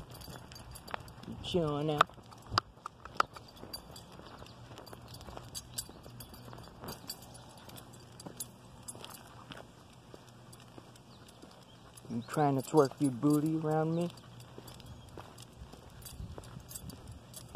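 A dog's paws patter on pavement.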